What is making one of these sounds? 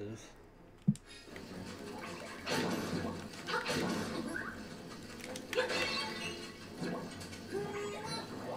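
Lively game music plays with chimes and sound effects.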